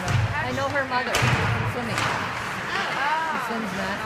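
Players crash into the boards with a loud thud.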